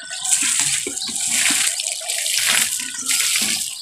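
Water splashes onto a heap of soil.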